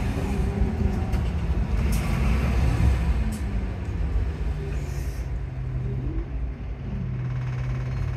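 A bus engine whines as the bus slows down.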